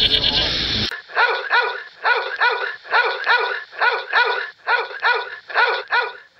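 A puppy yaps in quick repeated bursts.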